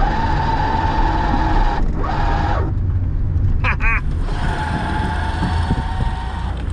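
A small electric car hums and whines as it drives.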